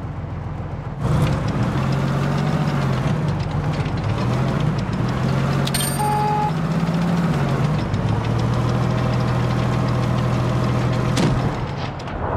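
A tank engine rumbles steadily, rising and falling in pitch as it revs.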